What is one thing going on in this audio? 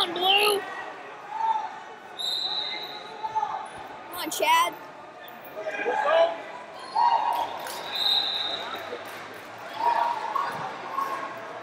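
Spectators shout and call out encouragement in a large echoing hall.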